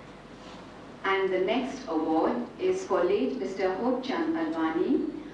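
A woman speaks into a microphone over a loudspeaker, in an echoing room.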